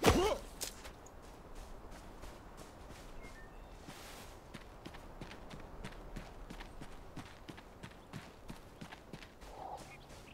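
Footsteps thud softly on grass.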